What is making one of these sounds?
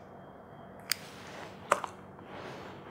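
A lighter clicks and sparks close by.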